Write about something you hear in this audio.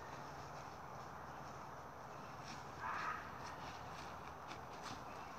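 Footsteps crunch on dry leaves and twigs nearby.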